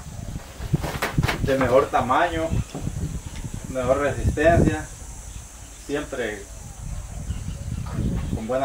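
Cattle shuffle their hooves on dry straw.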